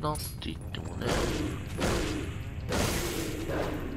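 A large creature swoops past with loud rushing, hissing bursts of air.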